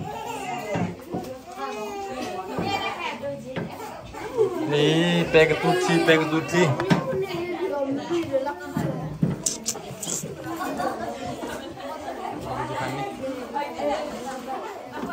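Children chatter nearby.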